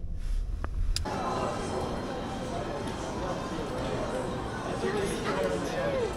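A crowd chatters in an echoing indoor hall.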